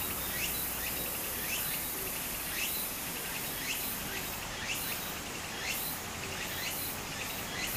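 Shallow water trickles and ripples steadily over stones.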